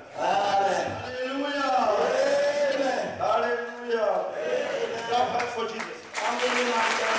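A man preaches loudly and fervently through a microphone.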